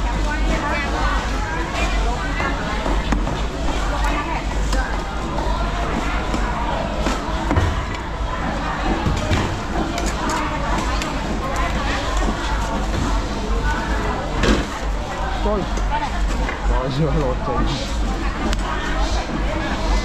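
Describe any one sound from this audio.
Many people chatter in a busy market all around.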